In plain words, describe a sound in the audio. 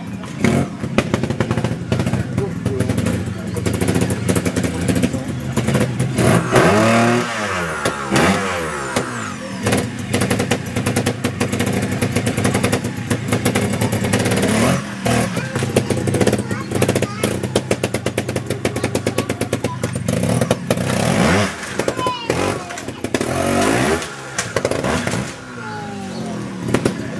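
A trials motorbike engine revs and sputters close by, rising and falling in bursts.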